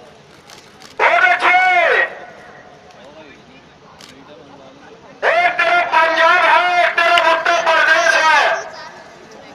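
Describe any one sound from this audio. A man shouts loudly through a loudspeaker.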